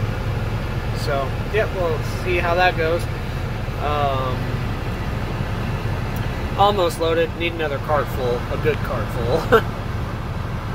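A young man talks calmly, close to the microphone, inside a vehicle cab.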